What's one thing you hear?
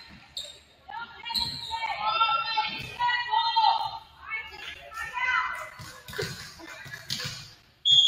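Players shout and call out to each other in a large echoing gym.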